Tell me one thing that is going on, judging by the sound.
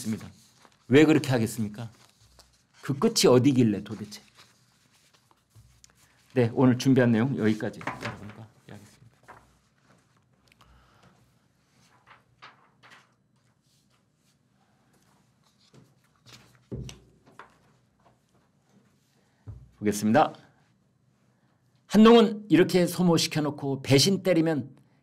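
An elderly man speaks calmly into a close microphone, in short bursts with pauses.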